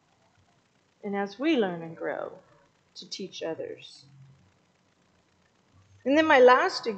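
A woman speaks calmly through a microphone, pausing between phrases.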